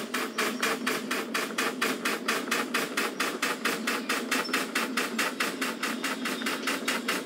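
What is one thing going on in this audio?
A steam locomotive chuffs rapidly and steadily.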